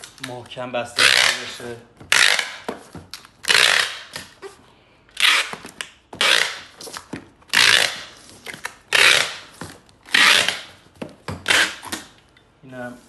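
A packing tape dispenser screeches as tape is pulled across a cardboard box.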